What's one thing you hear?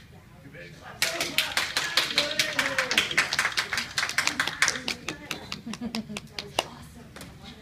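A group of people clap in an echoing room.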